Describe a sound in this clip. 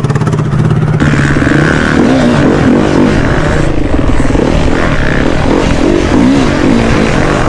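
A dirt bike engine revs up and down loudly while riding.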